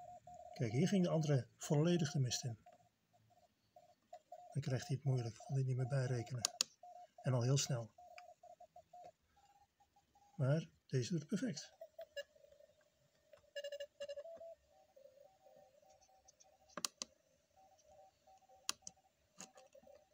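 A small radio speaker plays beeping tones of a coded signal.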